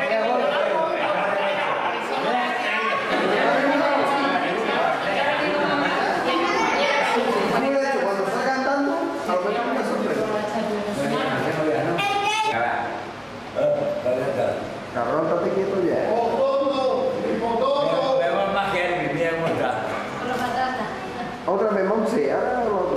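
Several men and women talk and laugh at once nearby, in a lively group.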